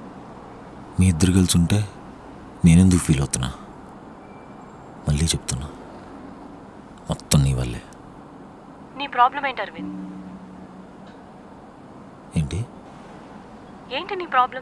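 A man talks on a phone in short bursts, close by and muffled in a car.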